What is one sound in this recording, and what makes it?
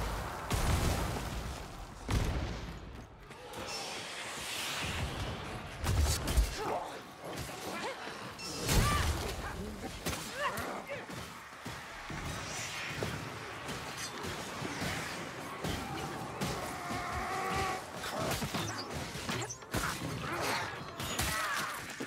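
Heavy weapons swing and strike with sharp thuds.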